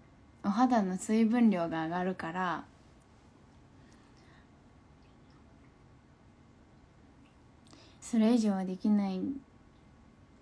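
A young woman speaks softly and close up, in short bursts with pauses.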